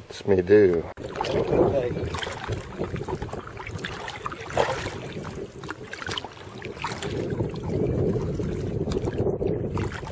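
A man talks calmly up close, outdoors in wind.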